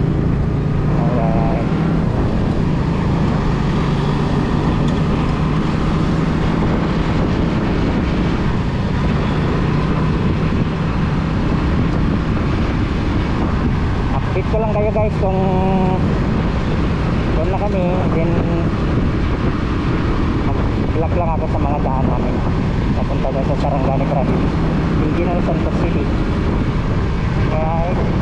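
A motorcycle engine hums steadily at cruising speed.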